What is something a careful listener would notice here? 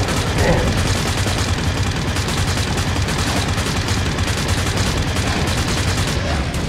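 A heavy gun fires in a rapid, unbroken stream of shots.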